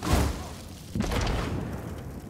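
A fiery explosion bursts with a deep roar.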